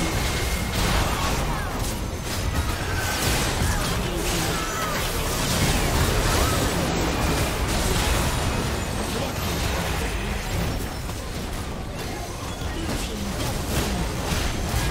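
Spell effects crackle and burst in a fast, busy fight.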